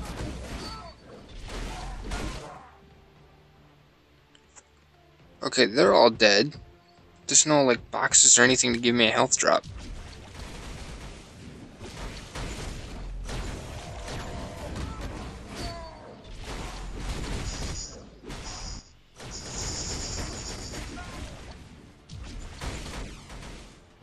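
Punches, slashes and energy blasts clash in a fast fight.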